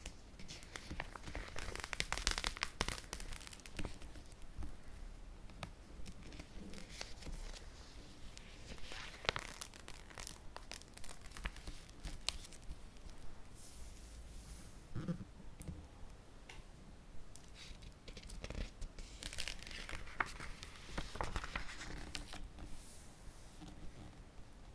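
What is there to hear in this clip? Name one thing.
Plastic binder sleeves crinkle and rustle as pages are turned.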